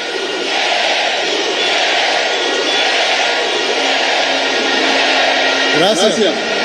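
A large crowd cheers and roars outdoors.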